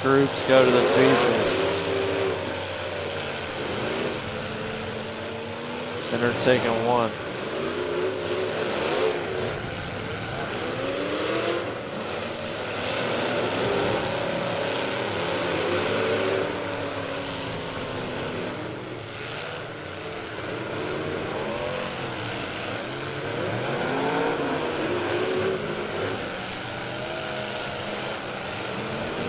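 Engines roar and rev loudly outdoors.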